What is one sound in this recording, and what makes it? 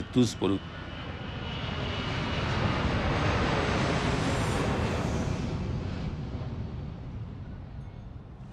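A jet plane roars overhead, swelling and then slowly fading.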